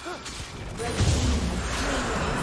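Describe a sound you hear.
A dragon lets out a dying roar with a loud burst.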